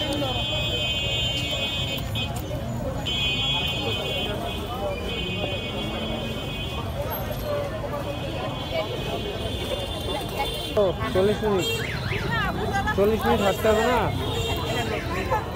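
Wood fires crackle.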